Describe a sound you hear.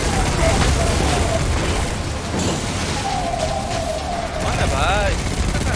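Video game gunfire rattles rapidly.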